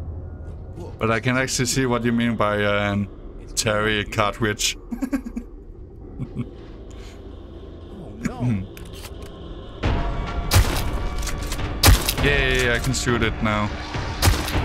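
A young man laughs and talks with animation close to a microphone.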